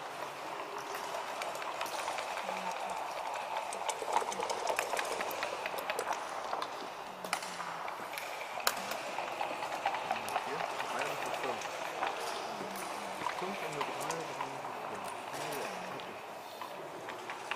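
Plastic checkers click against each other and against a wooden board.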